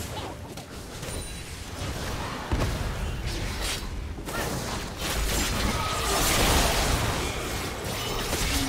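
Game spell effects crackle, whoosh and blast during a fight.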